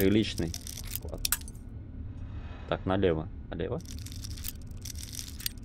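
A metal lock pick scrapes and clicks inside a lock.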